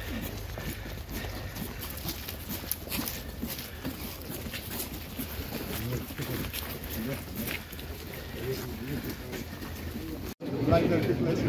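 Footsteps shuffle on a paved path as a procession walks.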